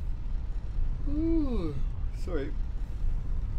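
A man makes a short, sliding exclamation close to a microphone.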